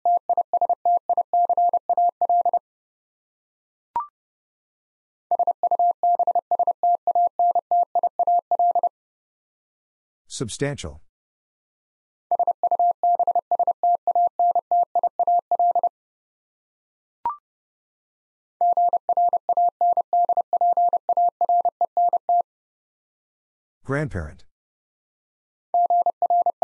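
Morse code beeps in quick, steady bursts of a high tone.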